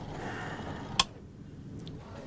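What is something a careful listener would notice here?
A knob on a metal panel clicks as it turns.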